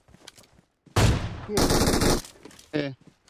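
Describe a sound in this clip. A scoped rifle fires a loud shot.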